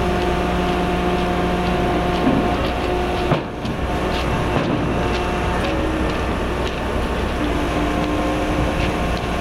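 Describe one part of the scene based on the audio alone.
A heavy machine's engine rumbles and drones steadily outdoors.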